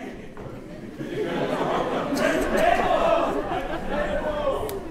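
A man sings loudly on a stage, heard from the audience in a large hall.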